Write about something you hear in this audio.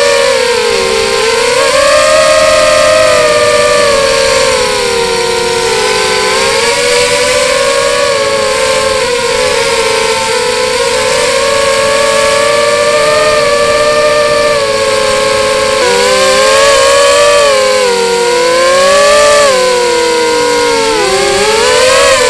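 Small propeller motors whine steadily, rising and falling in pitch as the drone flies.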